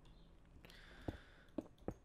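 A stone block cracks and breaks apart.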